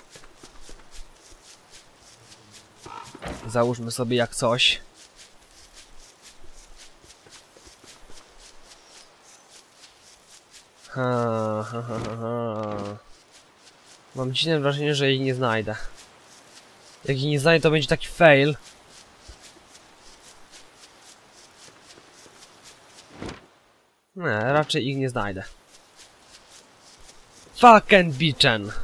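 Footsteps patter softly on dry ground.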